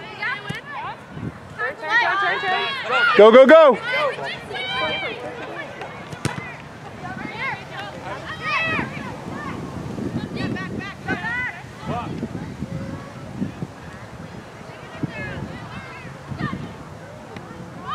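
Young women shout and call out to each other outdoors across an open field.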